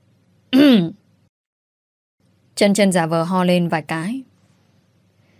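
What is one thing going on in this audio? A young woman speaks clearly and expressively into a close microphone.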